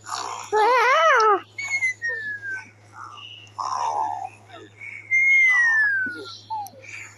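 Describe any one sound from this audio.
Playful cartoon sound effects chime and whistle.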